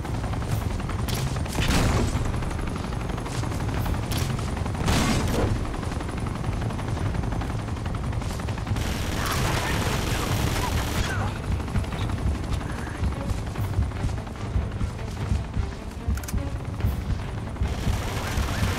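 A rifle fires bursts of shots.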